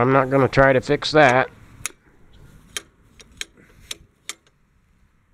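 A hand knocks against metal parts, making sharp clinks.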